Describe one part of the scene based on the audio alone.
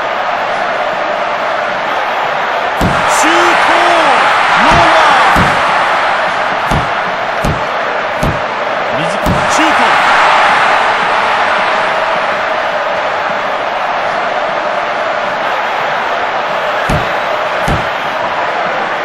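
A stadium crowd roars steadily, swelling at times.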